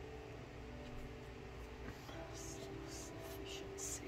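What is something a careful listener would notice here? A card slides and taps onto a table.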